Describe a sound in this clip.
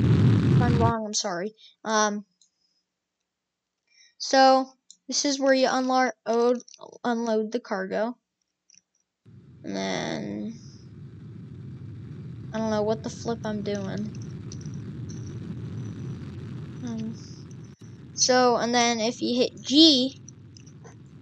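A boy talks with animation into a headset microphone, heard close.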